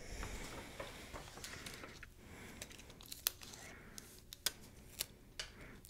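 Pages of a booklet rustle in a woman's hands.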